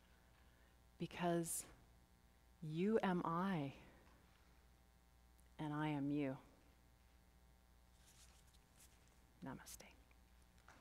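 A woman speaks slowly through a microphone, with pauses.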